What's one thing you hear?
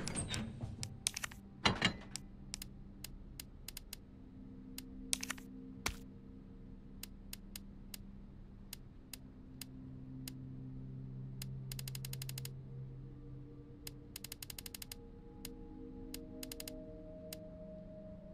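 Short electronic menu clicks tick again and again as a selection moves through a list.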